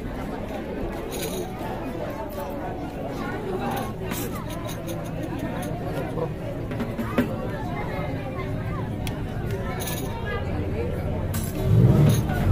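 A crowd of people sings and chatters loudly in an echoing hall.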